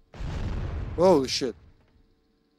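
A young man exclaims briefly into a close microphone.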